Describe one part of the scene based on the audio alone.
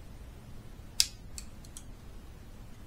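A small metal tool clicks against a circuit board.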